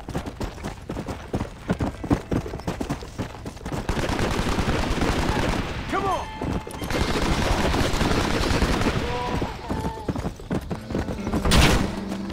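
A horse gallops, hooves thudding steadily.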